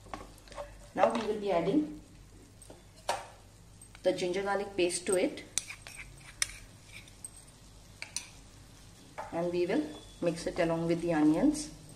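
A wooden spatula scrapes and stirs rice in a pan.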